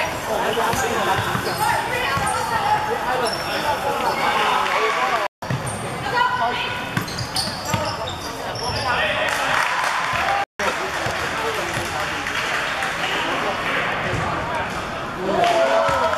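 Young players and spectators shout and chatter in a large echoing hall.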